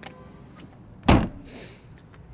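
A car's tailgate slams shut with a thud.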